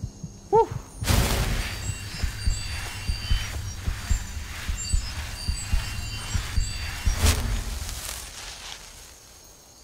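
Crackling magic spell sounds buzz and sizzle steadily.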